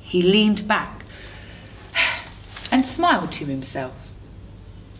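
A woman reads aloud expressively, close by.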